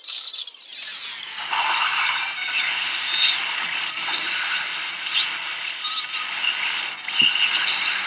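A blast roars and crackles with a rushing whoosh.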